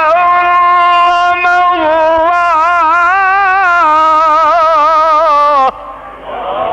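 An elderly man chants in a long, wavering melodic voice through a microphone.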